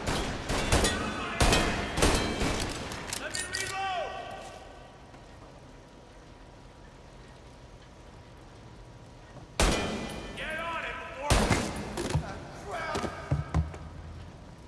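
Pistol shots bang loudly, each followed by a ringing echo.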